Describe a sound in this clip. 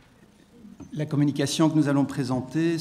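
A man speaks calmly into a microphone, heard over a loudspeaker in a large room.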